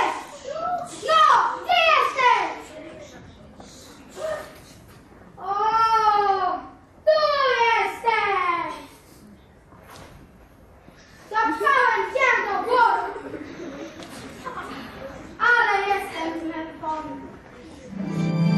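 Children's voices speak and sing on a stage, heard through a microphone.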